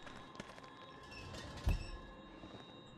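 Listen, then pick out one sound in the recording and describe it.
A wooden drawer slides open with a thud.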